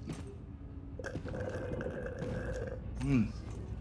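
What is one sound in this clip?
A man drinks from a can, gulping.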